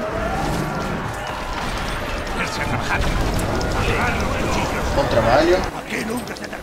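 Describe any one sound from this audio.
A magic blast explodes with a roaring crash.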